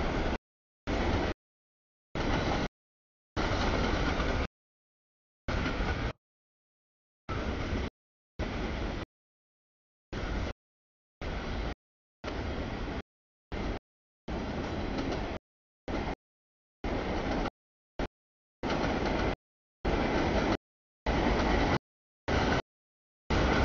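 A freight train rumbles and clatters past on the tracks.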